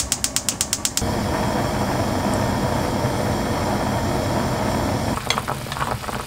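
Oil pours and trickles into a pot of liquid.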